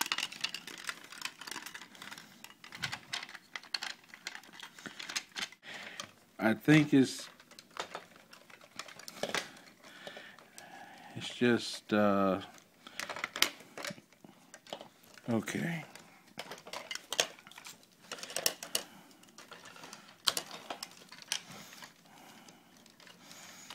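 Plastic parts click and snap as a toy is twisted and folded by hand.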